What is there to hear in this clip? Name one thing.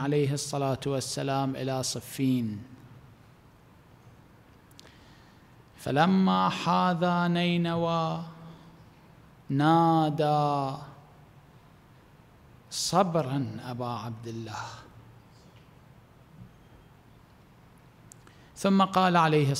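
A middle-aged man speaks slowly and solemnly into a microphone, with long pauses.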